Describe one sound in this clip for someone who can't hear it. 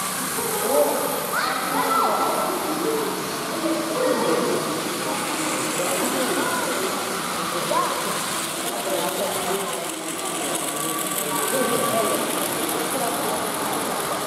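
Children chatter and call out in an echoing hall.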